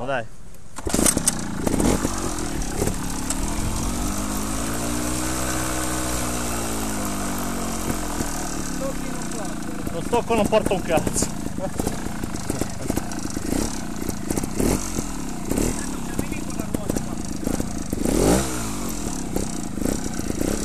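A motorcycle engine runs and revs up and down.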